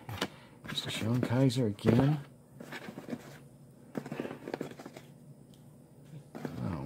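Trading cards rustle and flick against each other in hands.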